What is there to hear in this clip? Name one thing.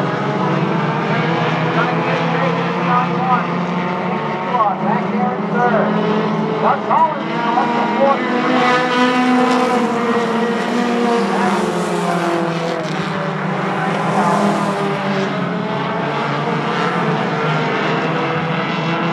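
Race car engines roar loudly as they speed past.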